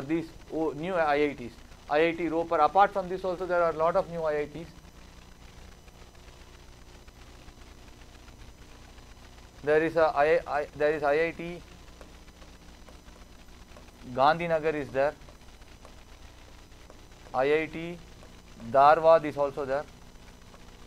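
A man speaks calmly and clearly into a microphone, in short bursts with pauses.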